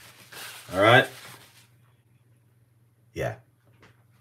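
A metal ring scrapes lightly against a plate.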